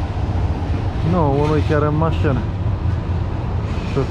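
A tram rolls past.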